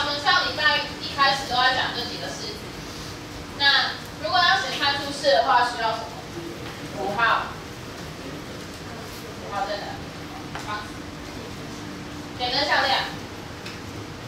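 A woman speaks clearly to a class.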